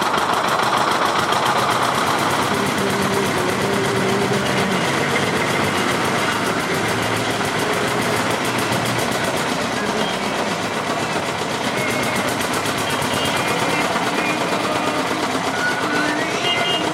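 Water gushes and splashes into a metal bucket.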